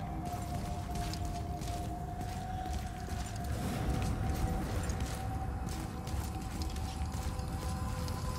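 Heavy footsteps crunch on frosty ground.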